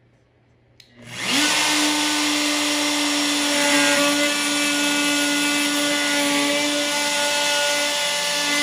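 A power router starts up and runs with a loud, steady high whine.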